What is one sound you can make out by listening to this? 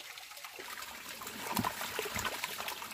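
Fish flap and splash in shallow water.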